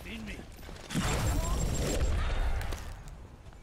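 A deep explosion booms.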